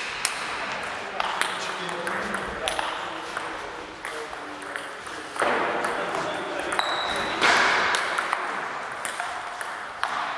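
A ping-pong ball clicks sharply back and forth on a table and paddles in a large echoing hall.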